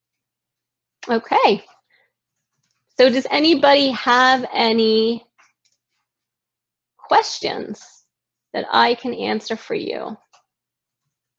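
A woman speaks calmly and warmly over an online call.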